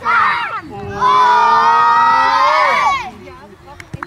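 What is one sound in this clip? A group of young children shout a cheer together close by.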